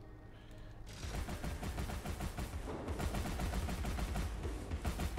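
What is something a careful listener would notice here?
A rapid-fire gun clatters steadily.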